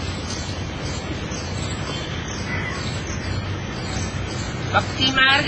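Wind rustles through leaves outdoors.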